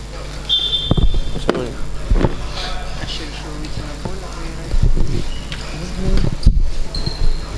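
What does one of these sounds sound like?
A ball is kicked on a hard floor in a large echoing hall.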